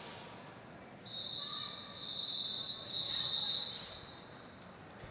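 A referee's whistle blows several short, shrill blasts.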